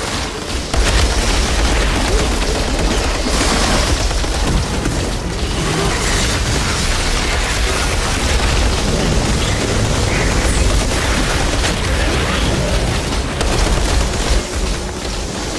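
Heavy rumbling explosions boom in bursts.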